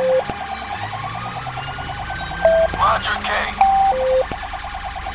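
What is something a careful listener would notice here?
A police siren yelps rapidly and close by.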